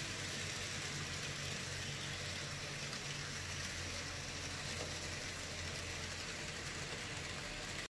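A model train's motor hums.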